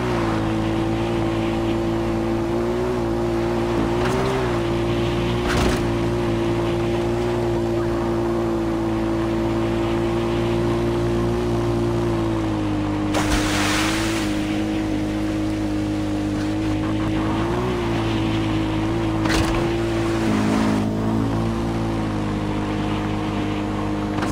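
A quad bike engine hums steadily, rising and falling slightly in pitch.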